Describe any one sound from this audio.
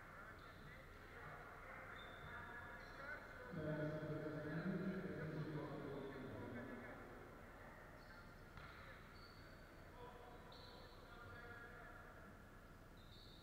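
Basketball players' shoes squeak on a wooden court.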